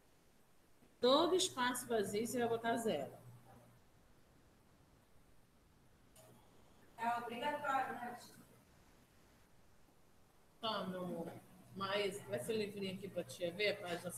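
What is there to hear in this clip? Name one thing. A woman speaks calmly through a microphone on an online call.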